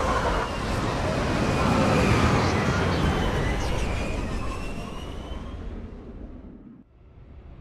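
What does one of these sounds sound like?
A spaceship engine roars loudly and then fades away.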